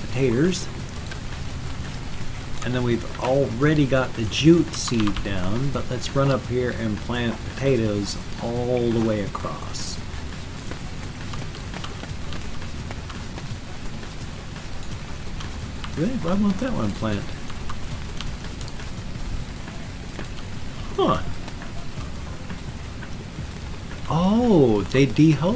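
An older man talks casually into a close microphone, with pauses.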